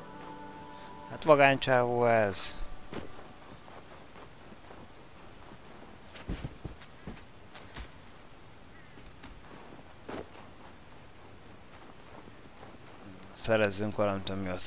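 Small footsteps crunch softly through snow.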